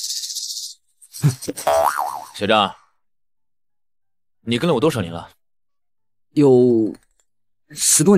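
Another young man speaks in a tense voice close by.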